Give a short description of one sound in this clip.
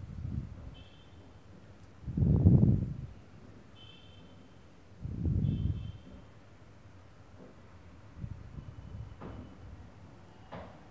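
A woman breathes slowly and deeply nearby.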